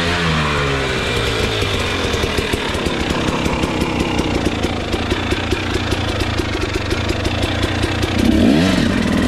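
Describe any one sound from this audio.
A dirt bike engine idles with a rapid ticking.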